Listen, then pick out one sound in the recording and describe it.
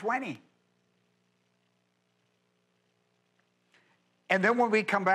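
An elderly man speaks with emphasis through a microphone, pausing between phrases.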